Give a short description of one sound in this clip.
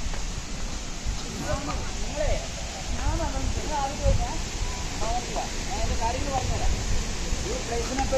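Young men talk casually a short way off outdoors.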